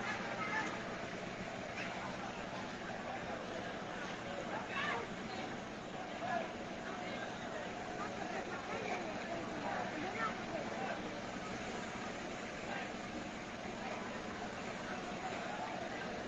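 A crowd of men and women shouts and talks in the distance, outdoors.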